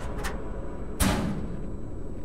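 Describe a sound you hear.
A metal locker door bangs open.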